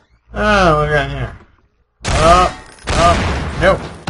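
A gun fires a short burst of shots.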